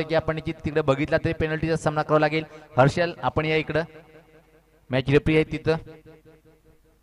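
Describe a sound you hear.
A man commentates with animation through a microphone.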